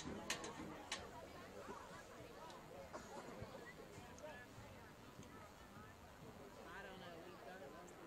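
A crowd of spectators chatters and calls out in the distance outdoors.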